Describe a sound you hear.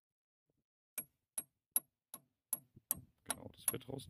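A ratchet screwdriver clicks in a steady, regular rhythm.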